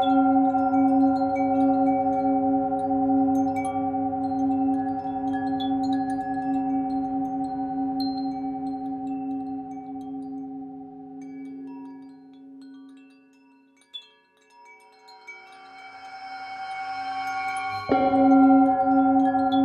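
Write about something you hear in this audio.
A metal singing bowl rings with a deep, steady humming tone that swells and fades.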